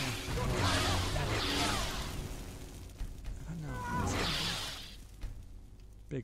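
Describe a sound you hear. Fire blasts whoosh and roar.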